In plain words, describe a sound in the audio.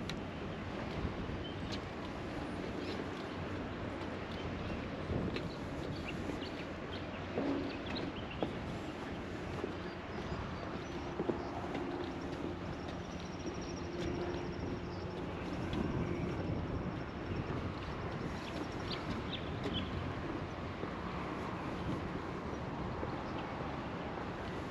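Wind blows steadily across open ground outdoors.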